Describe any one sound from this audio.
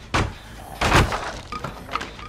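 Wooden boards crash and splinter.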